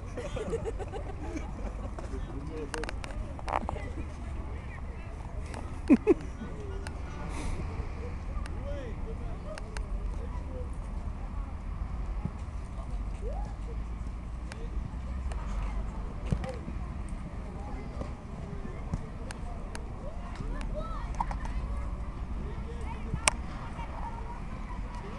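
Children shout and call out to each other across an open field.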